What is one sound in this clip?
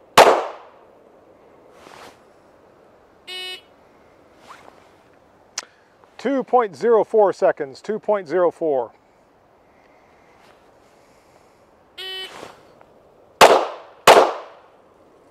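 A handgun fires loud, sharp shots outdoors.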